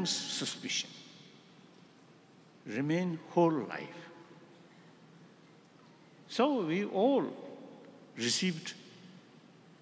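An elderly man speaks slowly and expressively into a microphone, in short bursts with pauses, in a reverberant hall.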